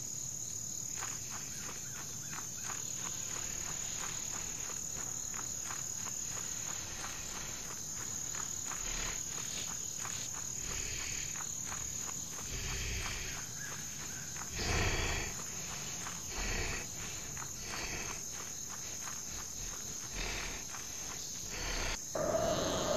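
Light footsteps patter steadily on a dirt path.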